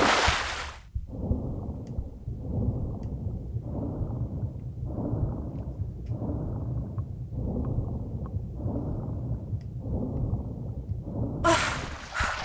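Muffled underwater swimming strokes swish in rhythmic surges.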